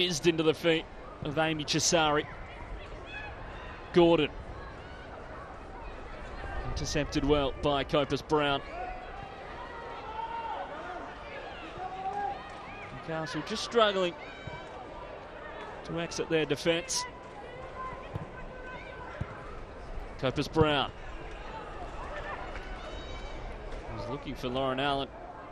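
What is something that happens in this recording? A crowd murmurs in an open stadium.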